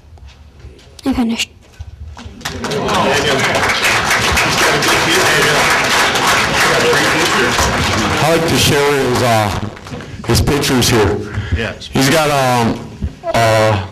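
A man speaks loudly and passionately into a microphone.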